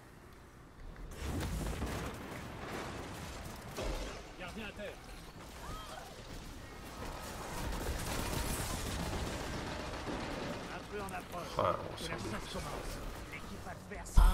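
Gunfire from a game rattles in bursts.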